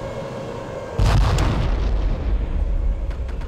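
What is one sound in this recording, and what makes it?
A tank cannon fires with a loud boom that echoes away.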